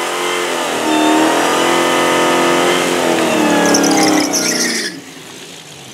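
Rear tyres squeal in a burnout.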